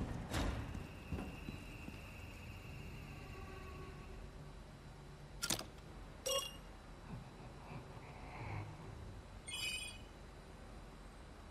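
An electronic console beeps and clicks.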